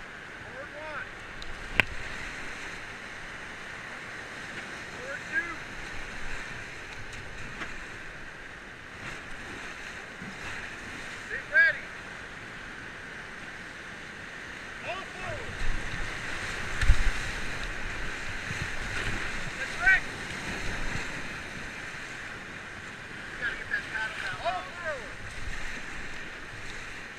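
Whitewater rapids roar steadily outdoors.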